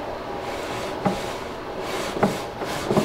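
A wooden drawer bumps shut with a dull knock.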